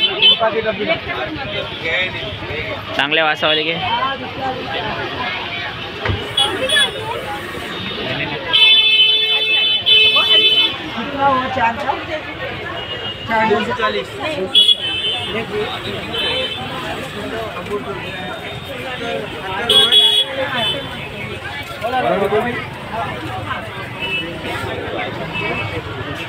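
Several adults talk at once around the listener, in a busy, crowded spot.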